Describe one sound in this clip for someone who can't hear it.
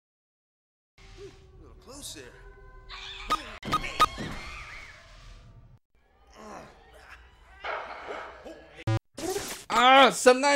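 Video game sound effects chime and zap.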